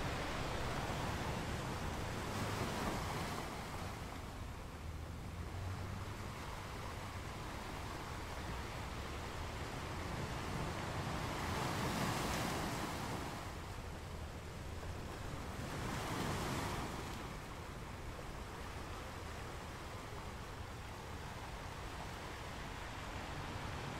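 Foamy water washes and hisses over the rocks.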